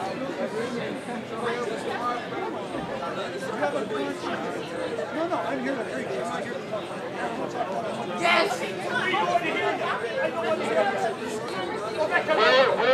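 A man speaks loudly and with animation to a crowd outdoors.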